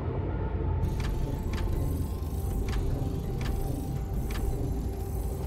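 Short interface clicks sound as building pieces snap into place.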